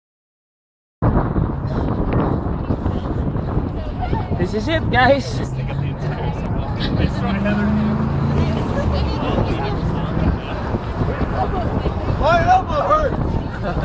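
A man talks close by with animation, laughing.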